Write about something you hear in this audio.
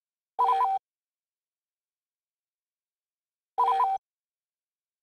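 A short electronic menu chime sounds twice.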